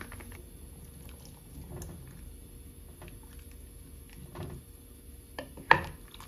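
A wooden spatula stirs a thick liquid and knocks against a pot.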